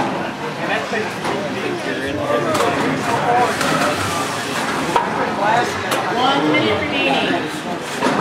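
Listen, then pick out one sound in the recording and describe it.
Metal robots bang into each other.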